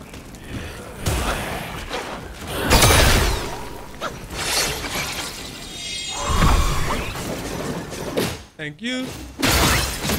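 Weapons clash with loud ringing impacts.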